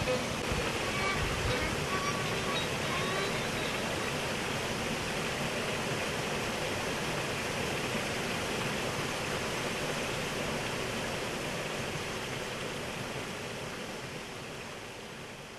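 Water pours into a wooden tub and churns loudly.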